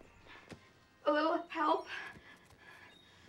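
A woman speaks softly, close by.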